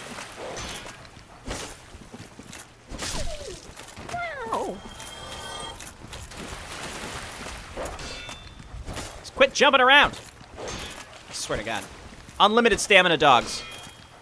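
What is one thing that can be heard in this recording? A sword swishes and strikes.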